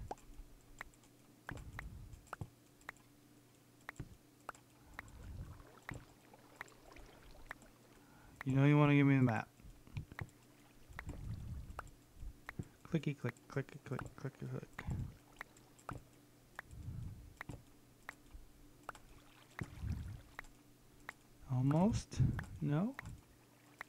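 Wooden paintings are placed with soft repeated clicks.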